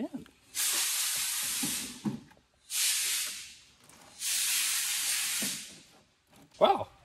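A hand rubs across a plastic surface in three long, hissing strokes.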